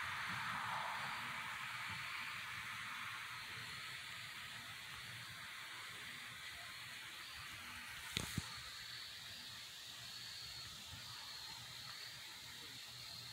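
Glowing embers hiss and crackle softly.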